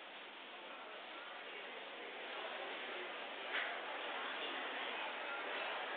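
A large crowd of men and women murmurs and chatters in a large echoing hall.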